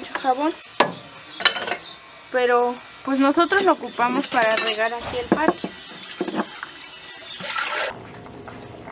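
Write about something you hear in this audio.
Water splashes in a bucket as hands move through it.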